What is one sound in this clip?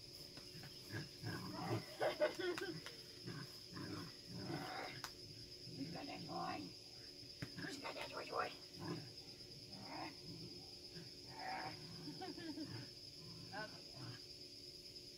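A woman talks to a dog with animation, a little way off, outdoors.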